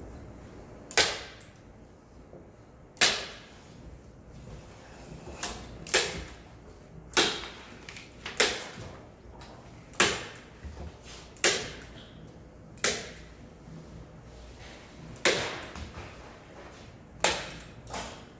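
Sharp knocks ring out on a wooden board every second or two.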